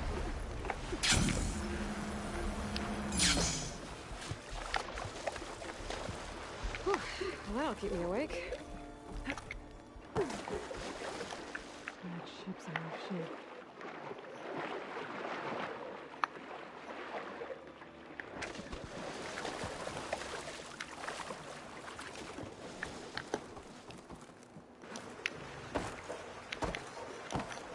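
Water splashes and churns around a swimmer.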